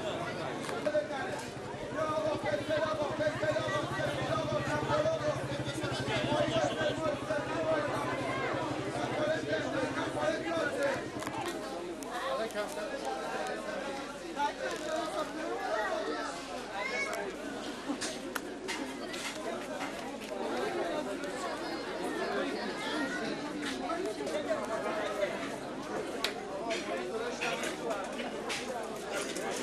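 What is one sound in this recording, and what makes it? A crowd of men and women chatter and call out all around, outdoors.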